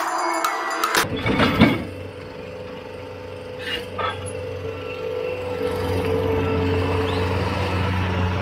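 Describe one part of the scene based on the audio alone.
A diesel engine of a tracked loader rumbles close by.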